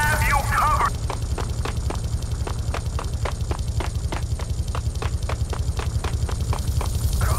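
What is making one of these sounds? Footsteps run quickly and steadily.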